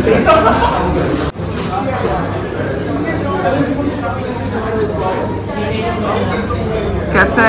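A crowd of people chatters in the background of a busy room.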